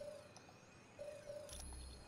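A soft electronic menu tone beeps.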